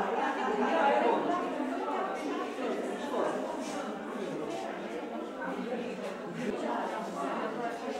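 A crowd of men and women chatters nearby in a room that echoes.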